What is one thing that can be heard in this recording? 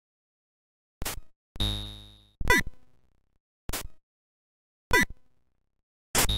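Short electronic game bleeps and zaps sound.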